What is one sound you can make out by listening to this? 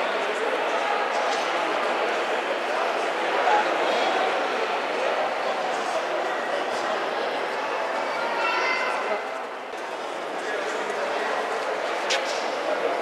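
A crowd chatters in a large, echoing hall.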